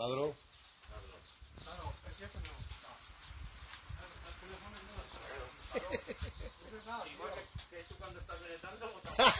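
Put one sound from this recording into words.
Several men talk casually nearby, outdoors.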